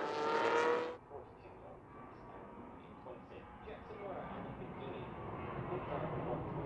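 Racing car engines hum more quietly in the distance.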